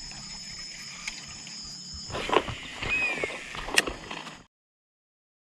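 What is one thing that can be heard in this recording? A fishing reel clicks and whirs as it is wound.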